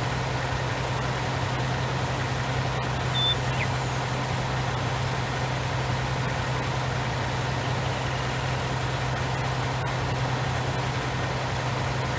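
Crops rattle along a harvester's conveyor into a trailer.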